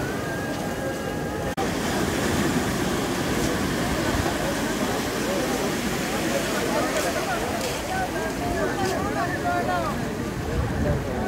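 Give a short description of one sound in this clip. Waves surge and crash.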